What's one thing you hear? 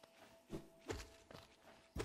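A blade slashes through the air with a swift swish.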